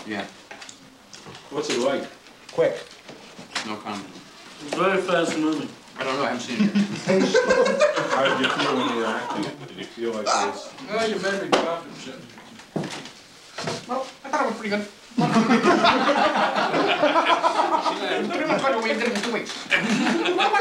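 Several men talk with animation.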